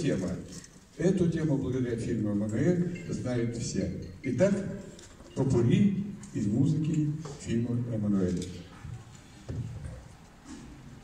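An elderly man speaks calmly through a microphone and loudspeaker.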